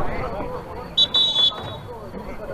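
A referee's whistle blows sharply once.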